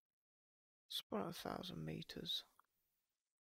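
A man speaks briefly into a microphone.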